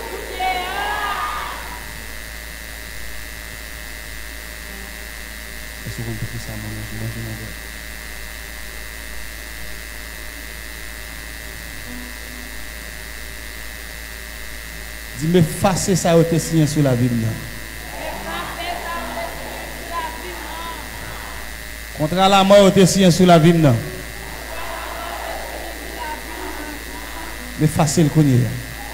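Women sing together through a microphone.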